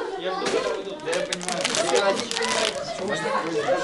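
A plastic water bottle crinkles in a hand.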